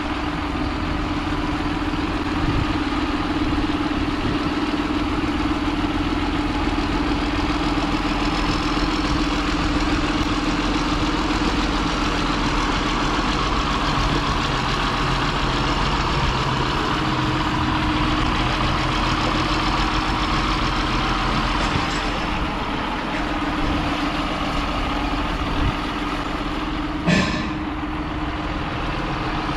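A tractor engine hums steadily close by.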